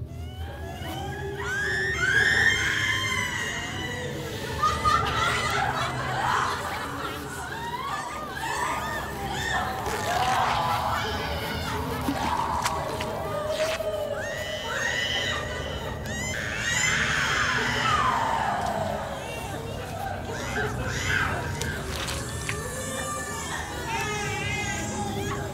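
A woman screams in terror, close by.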